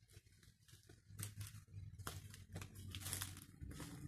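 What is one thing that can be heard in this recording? A plastic crate is set down on the ground with a knock.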